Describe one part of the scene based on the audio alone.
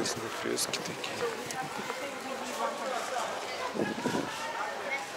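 A crowd of men and women chatter nearby.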